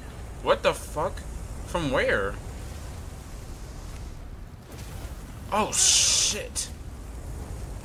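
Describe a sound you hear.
A fireball bursts with a loud whoosh.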